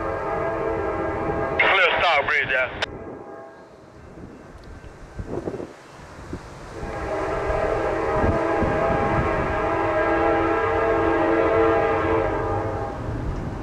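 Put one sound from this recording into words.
A diesel locomotive engine rumbles as a train rolls closer.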